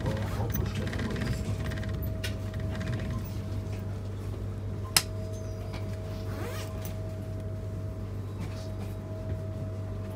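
A train's wheels click over rail joints.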